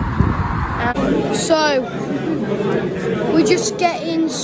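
A boy talks with animation close to the microphone.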